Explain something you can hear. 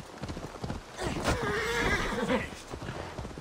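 A horse neighs loudly.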